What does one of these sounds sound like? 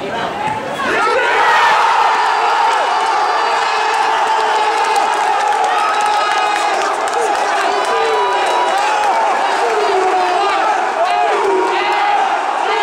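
A large crowd roars and cheers loudly after a goal.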